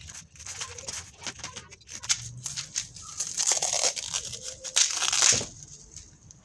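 Plastic wrapping crinkles and rustles as it is torn off.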